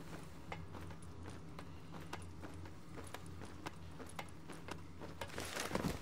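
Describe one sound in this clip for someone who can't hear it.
Hands and boots clank on metal ladder rungs.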